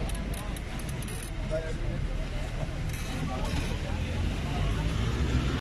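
A crowd of men and women talk and call out nearby outdoors.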